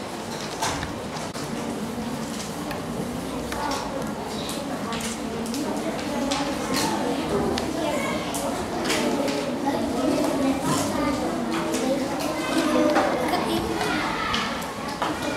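Paper rustles and pages turn.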